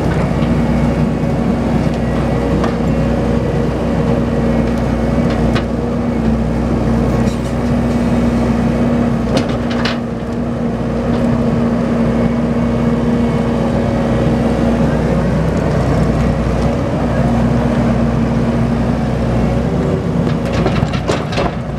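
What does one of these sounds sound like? A diesel engine rumbles steadily nearby.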